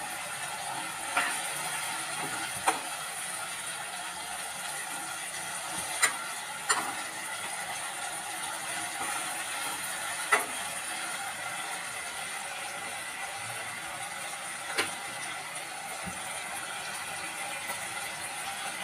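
Oil sizzles steadily in a hot pan.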